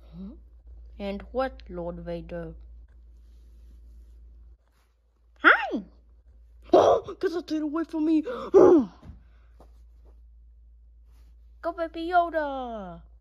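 A plush toy plays a short electronic voice clip when squeezed.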